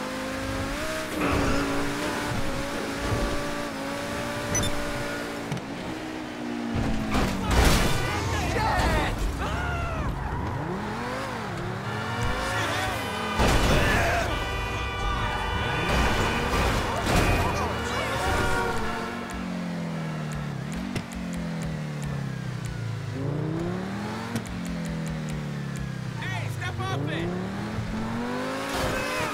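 A sports car engine roars and revs up through the gears.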